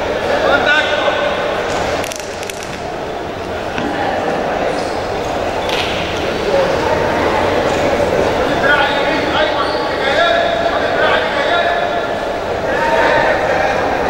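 Wrestlers' feet shuffle and scuff on a mat.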